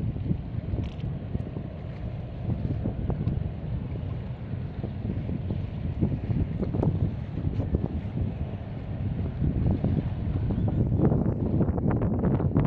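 Choppy water laps and splashes against a stone seawall.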